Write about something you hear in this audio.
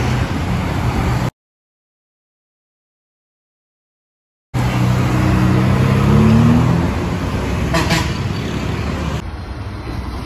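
Street traffic hums steadily.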